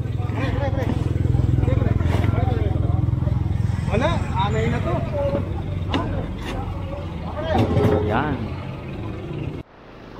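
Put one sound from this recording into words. Wooden planks knock and clatter as they are loaded onto a truck.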